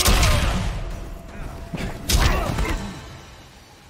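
A heavy blow lands with a loud impact.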